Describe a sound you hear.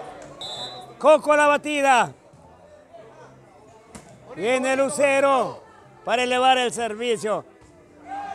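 Men in a crowd shout and cheer loudly in short bursts.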